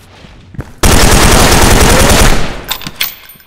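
A rifle fires a loud rapid burst.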